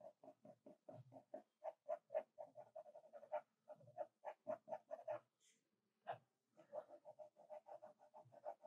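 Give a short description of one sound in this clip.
A pencil scratches quickly across paper in short, rapid strokes.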